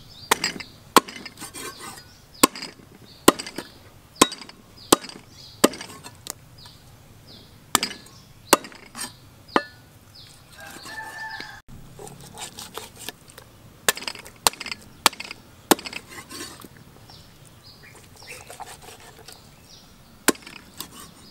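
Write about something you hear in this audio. A cleaver chops through bone on a wooden board with sharp knocks.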